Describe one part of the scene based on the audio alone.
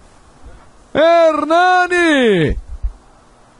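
A man nearby shouts loudly in a long, drawn-out yell.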